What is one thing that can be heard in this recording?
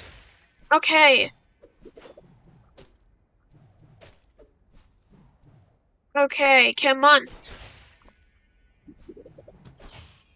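Short magic blasts zap and crackle.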